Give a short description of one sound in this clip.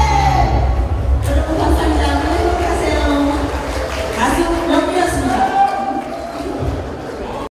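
A band plays upbeat music through loudspeakers in a large echoing hall.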